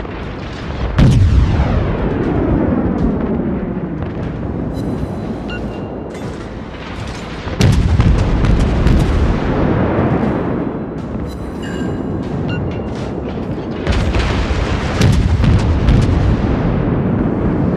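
Heavy naval guns fire in booming blasts.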